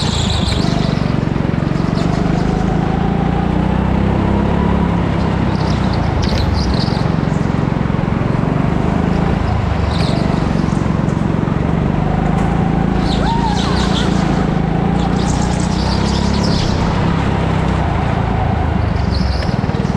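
Kart tyres squeal on a slippery floor in the turns.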